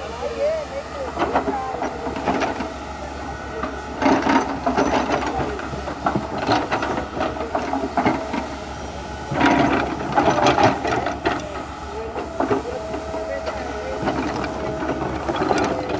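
Soil and rocks tumble and crunch as an excavator bucket digs and dumps earth.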